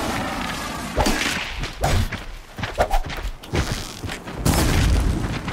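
A bowstring twangs as arrows are loosed in quick succession.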